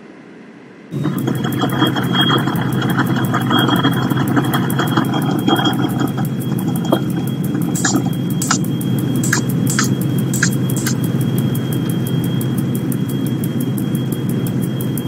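An electric locomotive rumbles along the track, heard from inside the cab.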